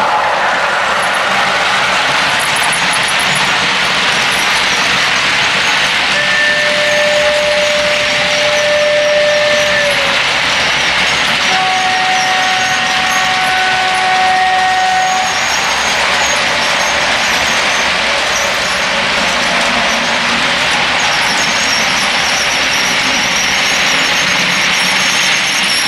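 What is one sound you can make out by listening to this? A model train rumbles and clicks along the track, close by.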